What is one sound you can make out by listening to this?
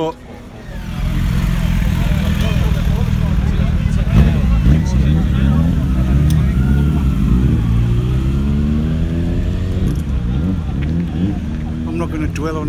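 A motorcycle engine rumbles and revs nearby.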